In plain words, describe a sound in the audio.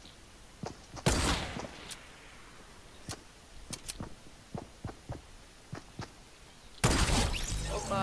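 A rifle fires with sharp, loud cracks.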